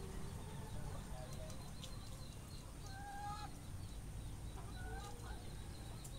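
Chickens cluck nearby.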